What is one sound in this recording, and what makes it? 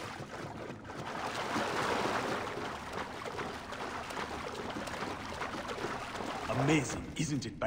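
Water splashes and sloshes as someone swims.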